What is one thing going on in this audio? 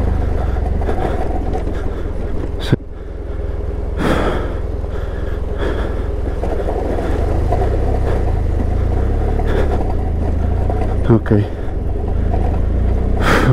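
Tyres crunch over loose rocks and gravel.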